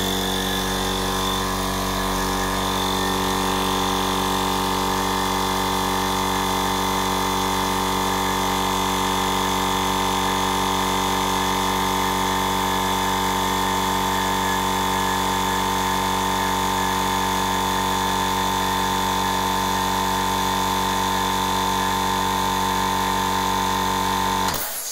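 An air compressor motor hums loudly and steadily close by.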